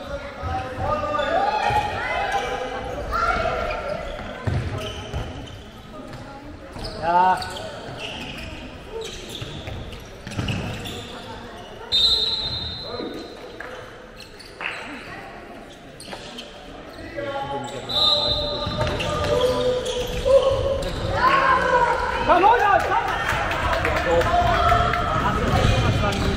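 Sports shoes squeak on a wooden floor in a large echoing hall.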